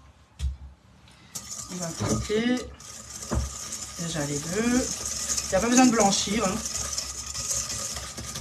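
A whisk clinks and rattles against a metal bowl.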